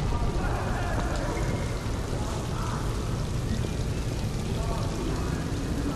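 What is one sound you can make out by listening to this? Rain pours down steadily.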